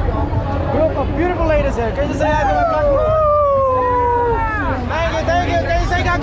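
Young women shout and cheer excitedly close by.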